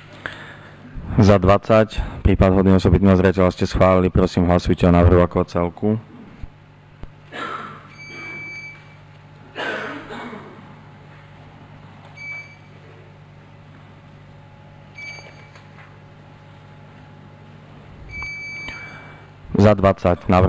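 A man speaks calmly over a loudspeaker in a large room.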